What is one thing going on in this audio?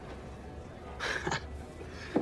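A man breathes out heavily.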